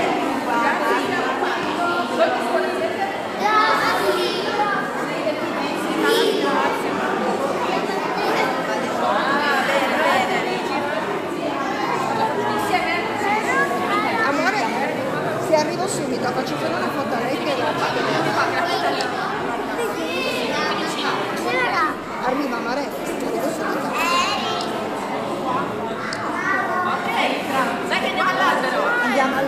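Women talk with animation among the children.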